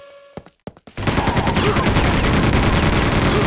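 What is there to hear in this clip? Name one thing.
A machine gun fires in a rapid, rattling burst.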